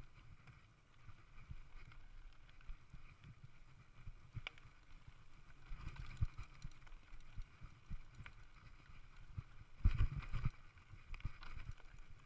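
A mountain bike rattles and thumps over rocks and bumps.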